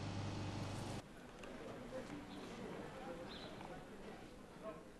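A crowd murmurs faintly outdoors.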